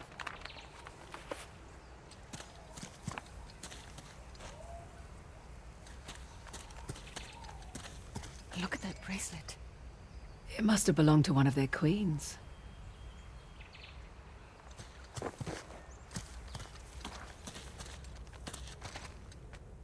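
Footsteps crunch softly through grass and stone.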